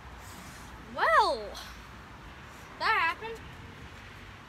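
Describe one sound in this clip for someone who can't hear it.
A boy speaks briefly close by.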